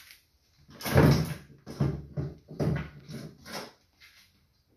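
A small dog yaps several times close by.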